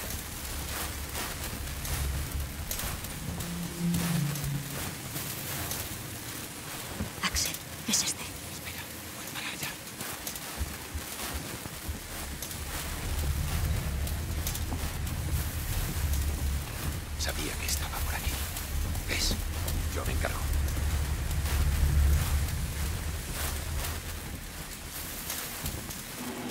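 A burning flare hisses and crackles steadily.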